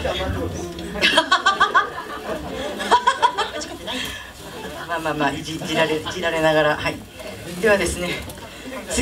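A young woman sings into a microphone, heard over loudspeakers.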